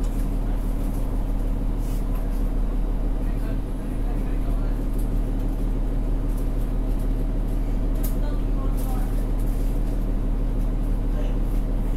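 A bus engine hums low and steady from inside the cabin.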